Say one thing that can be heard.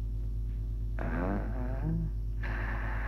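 A middle-aged man speaks quietly and tensely.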